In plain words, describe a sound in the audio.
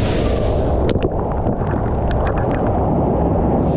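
A body splashes into a pool.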